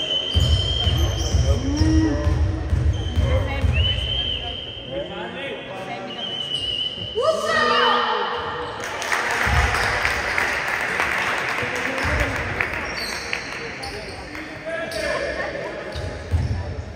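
Sneakers squeak on a hardwood floor in an echoing hall.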